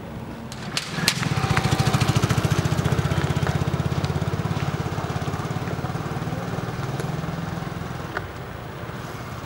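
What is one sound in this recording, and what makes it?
A motorcycle engine chugs close by and slowly moves away.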